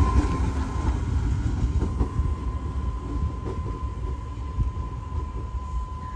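A distant train hums faintly as it approaches.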